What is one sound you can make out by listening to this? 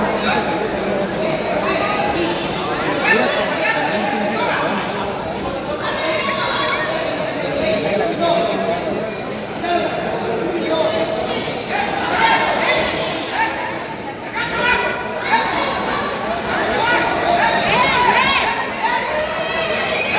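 A crowd cheers and shouts throughout a large echoing hall.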